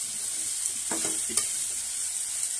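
A metal spoon scrapes and clatters in a pot.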